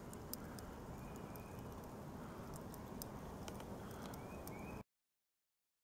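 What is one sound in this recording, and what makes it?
A small camp stove burns with a soft, steady hiss.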